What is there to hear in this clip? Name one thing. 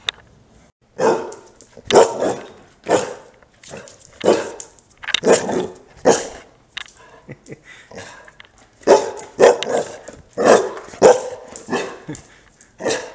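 A dog barks loudly and repeatedly nearby.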